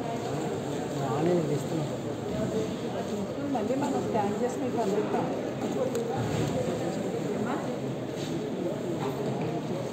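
Many men and women talk over each other in a crowded, echoing room.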